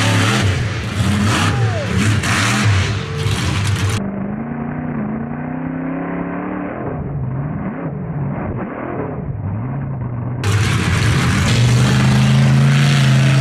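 A monster truck engine roars loudly outdoors.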